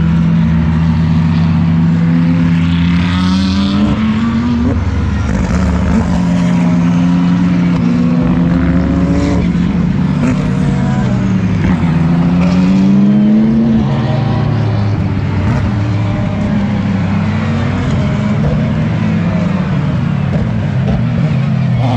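Racing car engines roar loudly as cars speed past, rising and falling in pitch as they shift gears.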